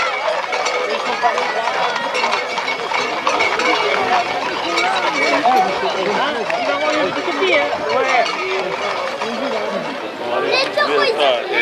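A large outdoor crowd of men and women chatters and calls out all around.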